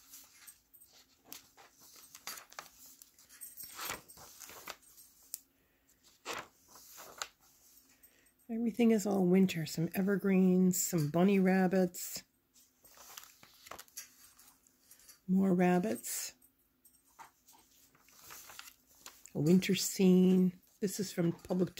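Paper pages rustle and flip as a book is leafed through.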